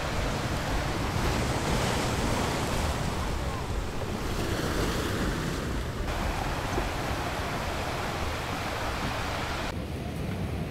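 Waves crash and wash up on a beach.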